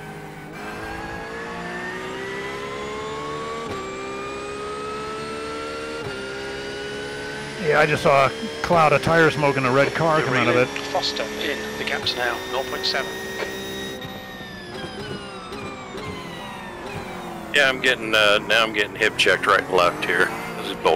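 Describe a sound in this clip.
A race car engine drones steadily, rising and falling in pitch as it shifts gears.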